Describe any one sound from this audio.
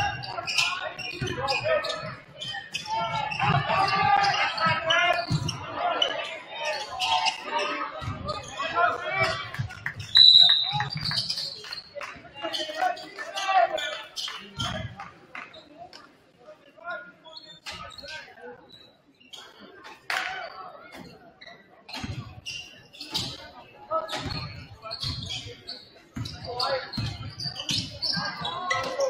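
Sneakers squeak and thud on a hard court in a large echoing gym.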